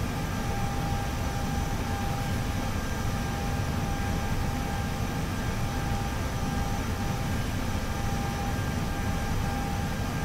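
An aircraft cockpit hums with a steady low engine rumble.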